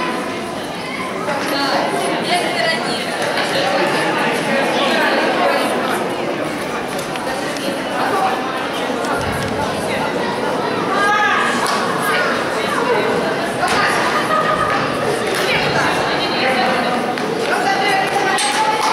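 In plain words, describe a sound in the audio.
A crowd of adults and children chatters in a large echoing hall.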